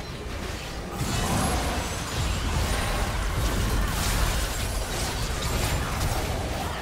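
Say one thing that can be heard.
Magic spells burst and crackle in a video game fight.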